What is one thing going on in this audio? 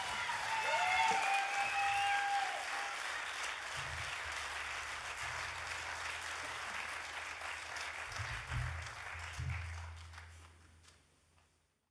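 An audience applauds in a large hall, then the applause fades away.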